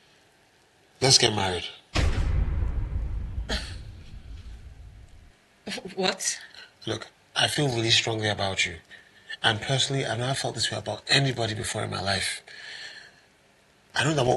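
A man speaks emotionally, close by.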